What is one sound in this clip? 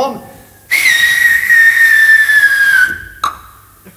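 A man holds a long, high sung note.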